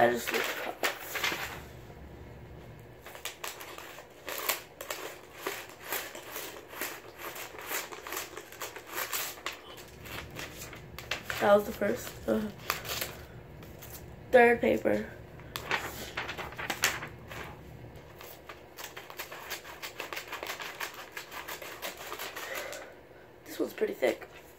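Paper rustles as it is folded and handled.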